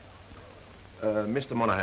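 A man talks on a telephone.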